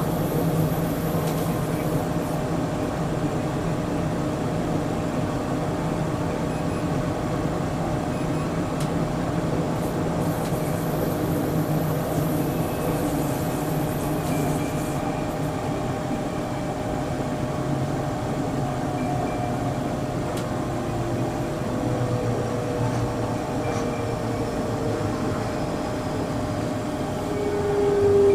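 A train rumbles and hums steadily along a track.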